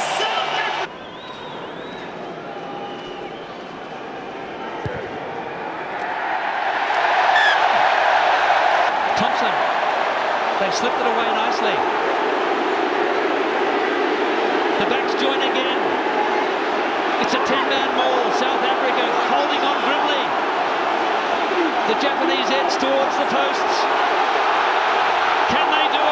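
A large crowd cheers and roars loudly in an open stadium.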